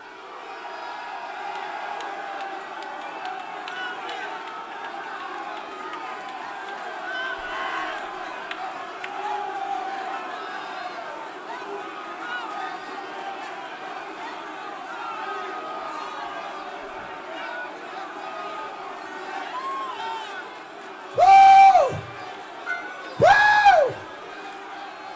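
A large crowd of men and women pray aloud together in an echoing hall.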